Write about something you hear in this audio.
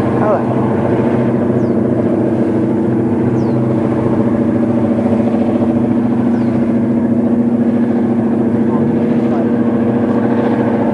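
A diesel locomotive engine drones steadily in the distance.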